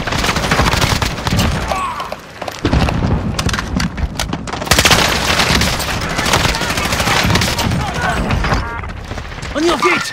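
An assault rifle fires rapid bursts.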